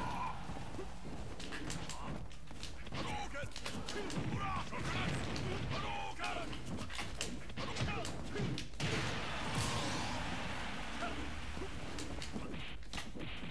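Punches and hits thump and crack in a video game fight.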